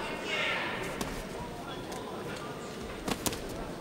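Boxing gloves thud as punches land.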